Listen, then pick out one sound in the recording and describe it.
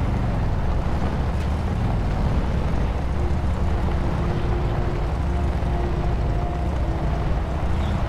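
An off-road pickup truck engine rumbles as it drives over dirt.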